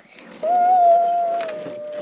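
A small plastic toy knocks against a plastic cup.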